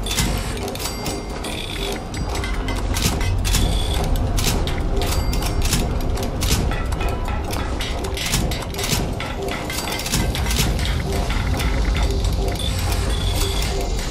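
Menu clicks tick as items are selected.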